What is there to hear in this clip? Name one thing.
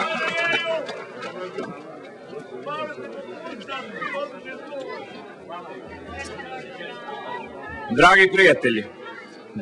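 A man speaks with animation into a microphone, heard through loudspeakers in a large echoing hall.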